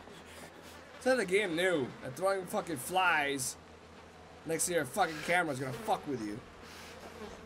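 A young man talks excitedly through a microphone.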